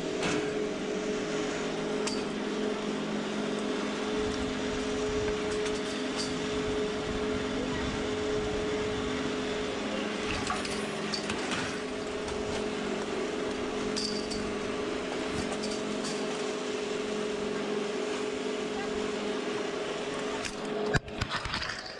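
A ski lift machine hums steadily.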